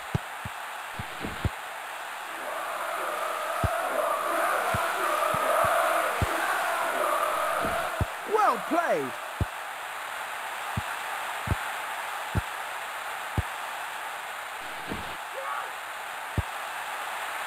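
A football is kicked with short, sharp thuds.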